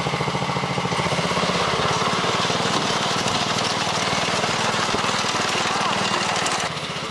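A small engine revs up as a snowmobile pulls away.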